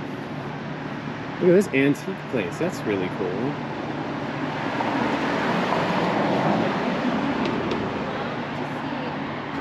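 A car drives past on a nearby street.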